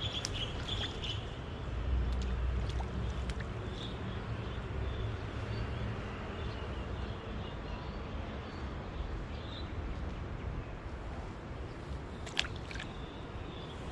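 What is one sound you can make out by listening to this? Water laps gently at a grassy bank.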